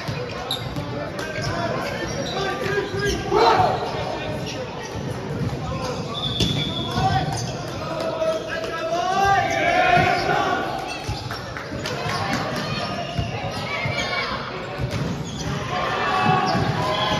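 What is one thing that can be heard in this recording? Players and spectators chatter and call out in a large echoing hall.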